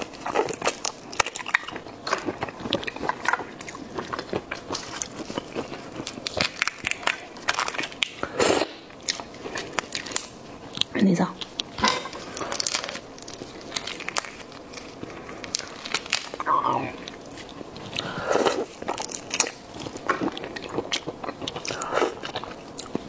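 Shrimp shells crack and crunch as they are peeled by hand.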